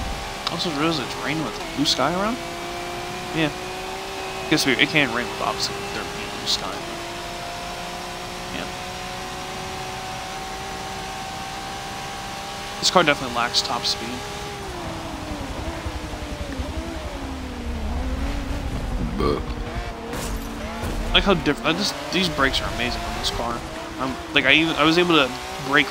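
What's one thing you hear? A racing car engine drones steadily at high revs, then drops as the car slows.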